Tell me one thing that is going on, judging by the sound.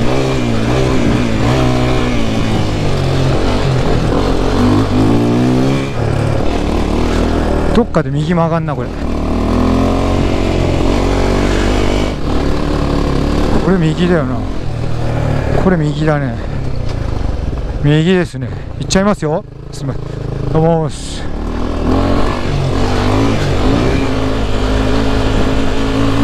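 A motorcycle engine hums steadily as the bike rides along a dirt track.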